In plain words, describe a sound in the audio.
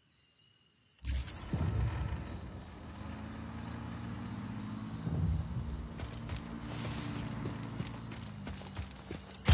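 Footsteps rustle through dense grass and leaves.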